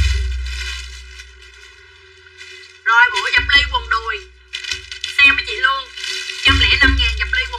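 Fabric rustles.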